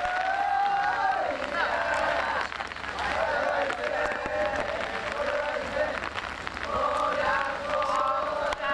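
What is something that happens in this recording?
A crowd of men chant together loudly outdoors.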